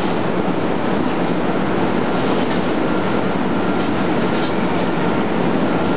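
Loud machinery drones steadily throughout.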